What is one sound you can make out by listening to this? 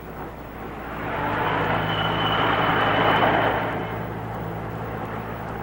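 A car engine hums steadily inside the car.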